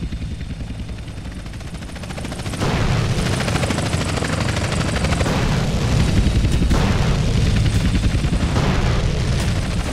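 Helicopter rotors chop loudly overhead.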